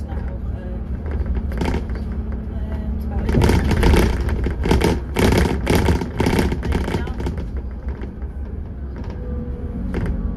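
A bus engine rumbles steadily while driving along a road.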